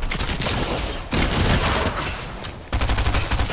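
Gunfire crackles in a quick burst.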